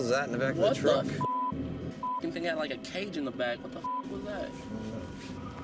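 Young men talk with animation inside a car.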